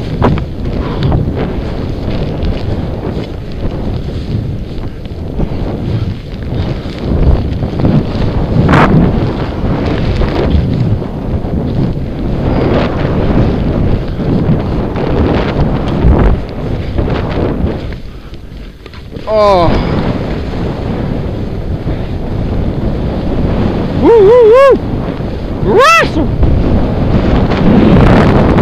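Wind rumbles and buffets against the microphone.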